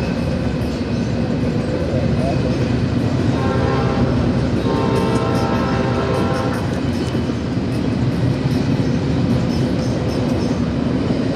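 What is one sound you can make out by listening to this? A long freight train rumbles steadily past at close range.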